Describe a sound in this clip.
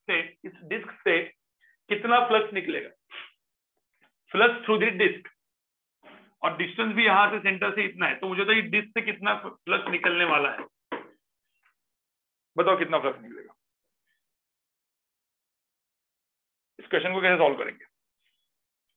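A man lectures calmly through a microphone on an online call, with pauses.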